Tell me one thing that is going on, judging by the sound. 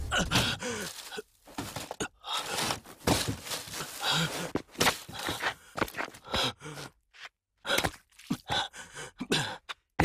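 A man groans and pants in pain.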